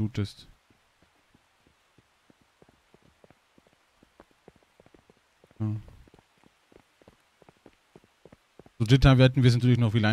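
Footsteps run on asphalt.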